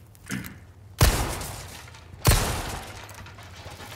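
A shotgun fires two loud blasts that echo.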